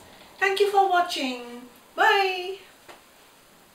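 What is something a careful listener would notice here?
A middle-aged woman speaks cheerfully close by.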